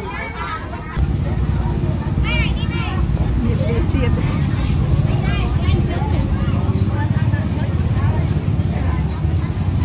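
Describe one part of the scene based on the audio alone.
A crowd murmurs and chatters outdoors nearby.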